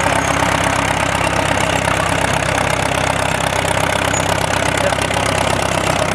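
A second tractor's engine rumbles close by.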